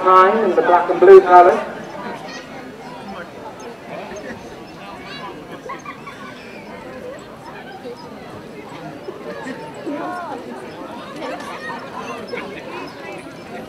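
Horses' hooves thud on grass as harness horses trot past.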